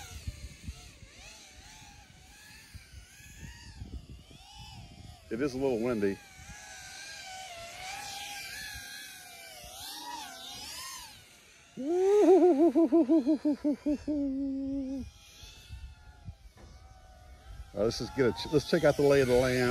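A small drone's motors whine, rising and falling in pitch as it races low over the ground.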